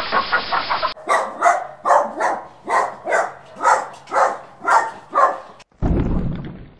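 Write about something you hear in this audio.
A dog pants rapidly.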